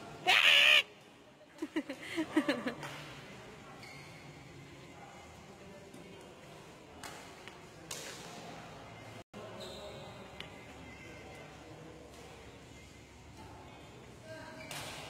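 Shuttlecocks are struck with sharp racket pops in a large echoing hall.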